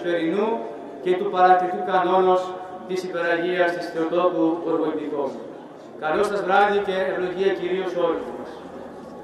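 A man chants loudly through a microphone in a melodic, sustained voice.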